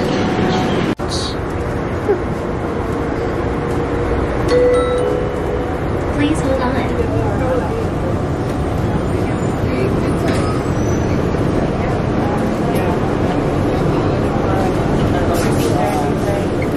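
A subway train rumbles and rattles steadily along the tracks.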